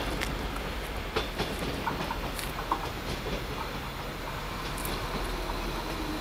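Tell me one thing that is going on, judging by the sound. A train approaches along the tracks with a low rumble.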